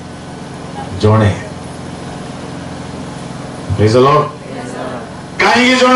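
A man speaks loudly into a microphone in short bursts, heard through loudspeakers.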